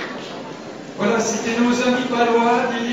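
A choir of young voices sings.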